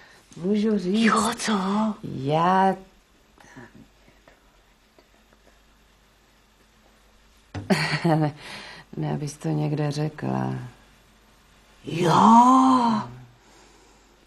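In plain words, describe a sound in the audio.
An elderly woman talks, close by.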